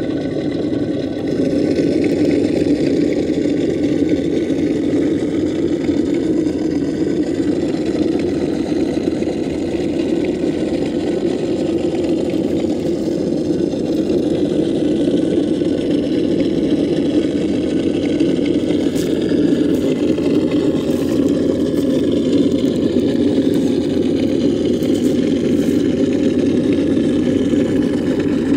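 A small electric motor whirs steadily as a toy truck crawls along.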